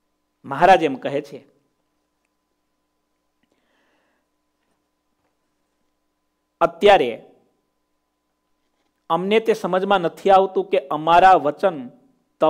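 A man speaks calmly and close to a microphone, with long pauses.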